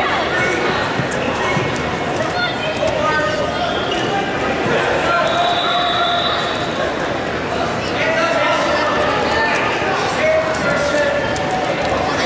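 Wrestlers' shoes squeak on a mat.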